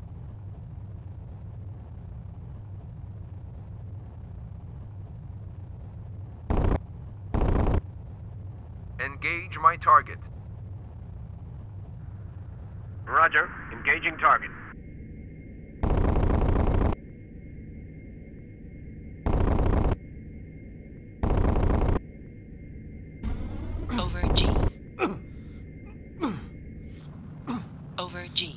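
A jet engine drones steadily.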